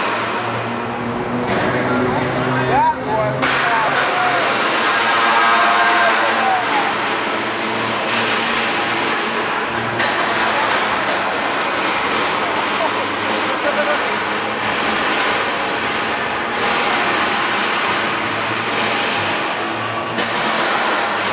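A flamethrower roars in bursts of fire.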